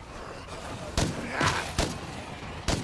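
Gunshots bang sharply, one after another.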